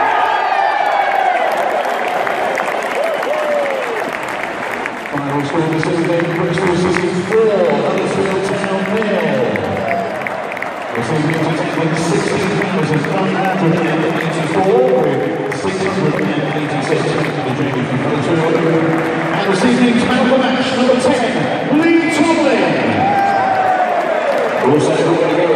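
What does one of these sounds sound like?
A large stadium crowd cheers and shouts nearby.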